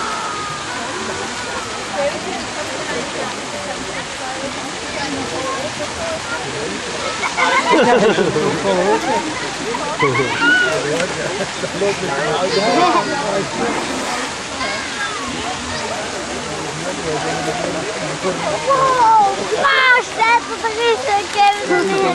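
Water splashes as elephants play in a pool.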